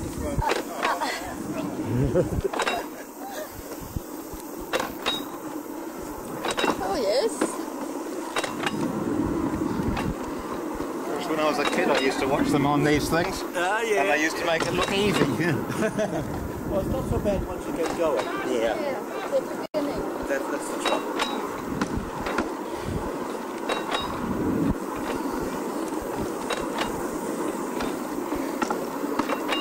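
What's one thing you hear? A small rail trolley rattles and clanks along a track outdoors.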